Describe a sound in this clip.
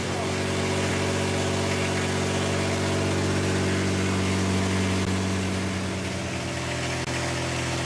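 An electric fan hums and whirs steadily close by.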